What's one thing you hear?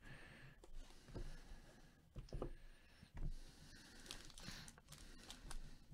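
Foil wrappers crinkle softly as they are handled.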